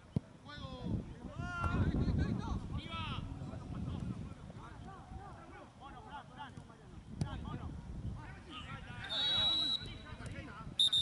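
Men shout on an outdoor pitch.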